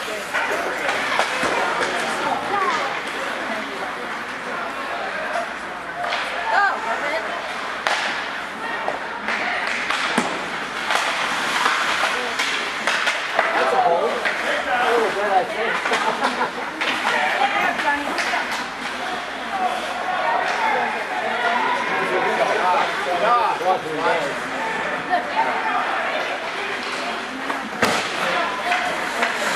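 Sticks clack against the puck and each other.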